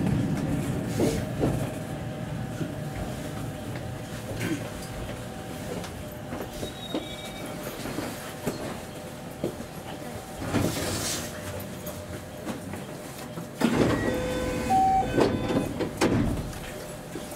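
Train wheels click over rail joints and points.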